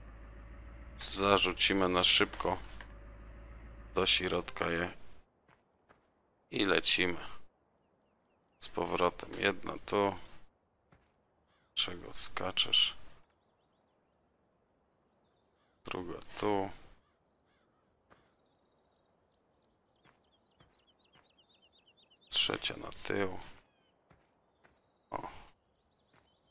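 A man talks with animation close to a headset microphone, in short bursts.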